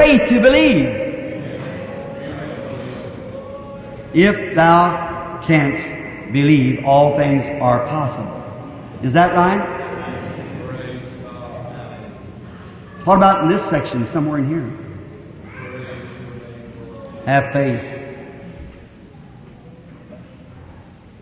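A man preaches with fervour into a microphone, heard through an old recording with echo.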